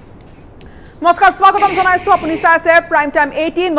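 A young woman speaks clearly into a microphone, close up.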